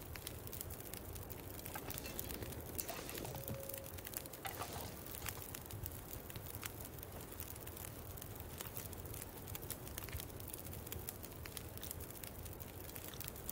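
A campfire crackles and pops steadily.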